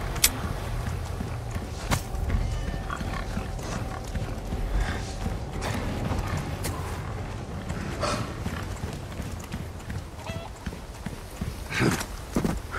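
Footsteps crunch slowly on dirt and wooden boards.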